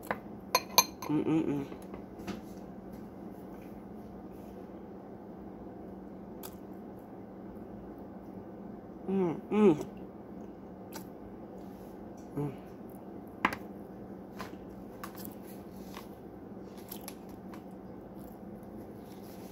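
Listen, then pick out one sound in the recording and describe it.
A woman chews crunchy powder.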